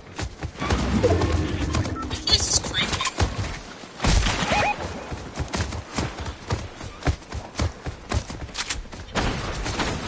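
Quick footsteps thud on the ground.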